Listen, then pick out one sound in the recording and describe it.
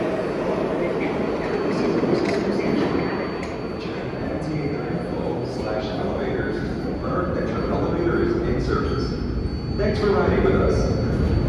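A subway train rumbles and roars into an echoing station.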